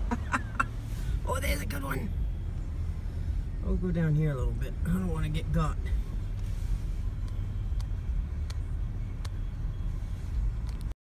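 A car engine hums and tyres rumble on the road, heard from inside the car.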